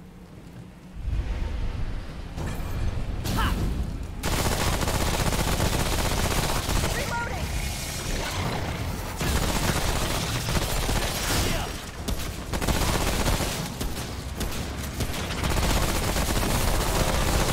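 Gunfire rattles loudly and continuously.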